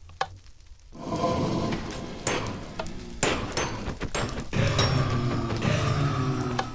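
A creature breathes and crackles like fire close by.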